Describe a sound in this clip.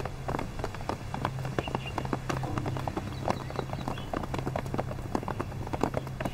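A group of men walk with footsteps on stone paving.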